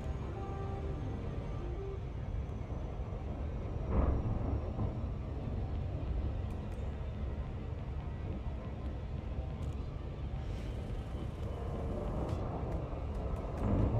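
A low spaceship engine rumbles steadily.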